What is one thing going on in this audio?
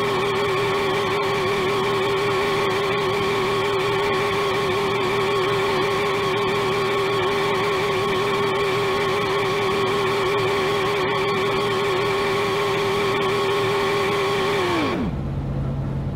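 A racing car engine roars at a steady high pitch, then winds down.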